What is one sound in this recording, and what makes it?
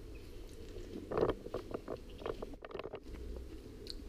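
A man crunches a biscuit close by.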